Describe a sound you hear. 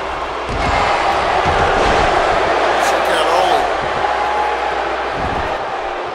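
Bodies slam down hard onto a wrestling mat.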